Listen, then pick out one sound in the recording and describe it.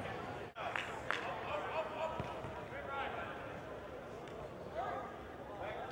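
A ball is kicked with a dull thud.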